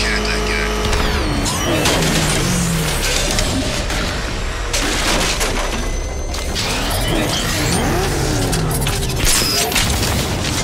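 A powerful car engine roars and revs at speed.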